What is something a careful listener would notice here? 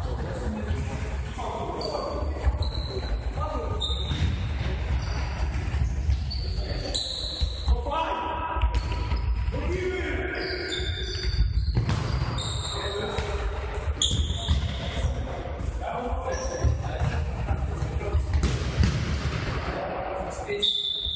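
Shoes squeak sharply on a hard floor.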